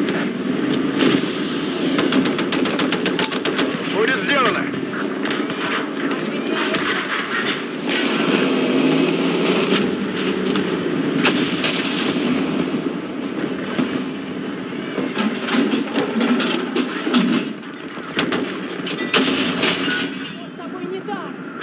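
Explosions boom and crack.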